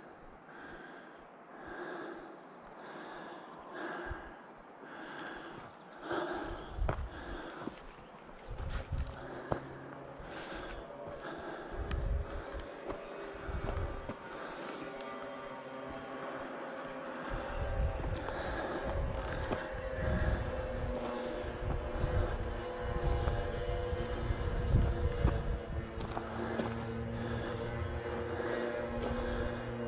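Footsteps crunch on dry pine needles and leaves.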